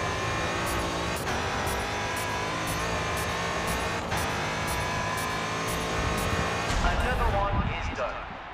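A racing car engine roars at high revs as it speeds along.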